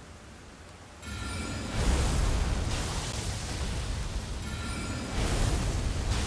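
A magic spell chimes as it charges.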